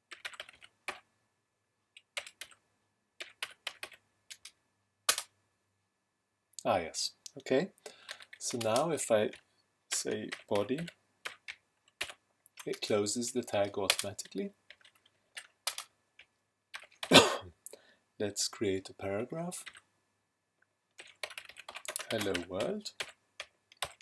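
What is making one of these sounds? Keys click on a keyboard in quick bursts.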